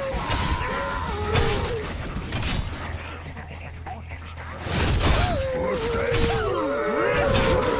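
Electronic game sound effects whoosh, clang and chime.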